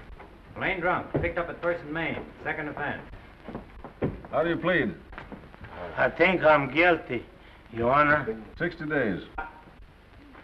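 A man speaks nearby in a low, weary voice.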